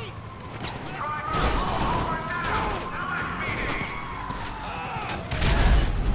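A police siren wails and rises and falls.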